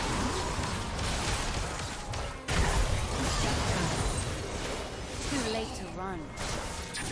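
Magical battle sound effects clash, whoosh and crackle rapidly.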